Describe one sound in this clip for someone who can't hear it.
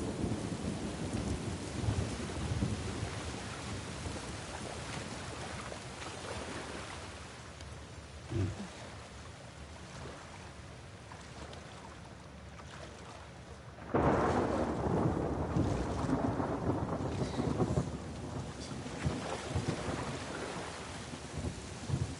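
Water splashes as a person wades and swims through it.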